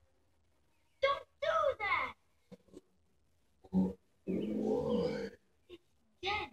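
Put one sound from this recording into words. A young boy speaks with animation through a television speaker.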